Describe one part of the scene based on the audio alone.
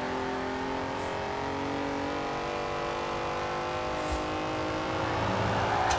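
A racing car engine roars steadily at high revs, climbing in pitch as the car speeds up.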